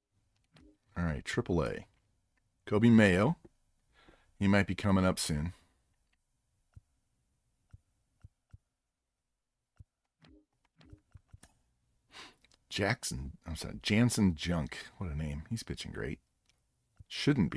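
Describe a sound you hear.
A middle-aged man talks with animation into a close microphone, in short bursts with pauses.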